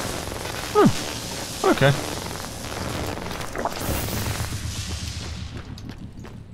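A burst of gas hisses loudly and slowly fades.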